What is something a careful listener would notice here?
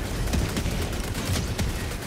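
A laser beam fires with a sizzling hum.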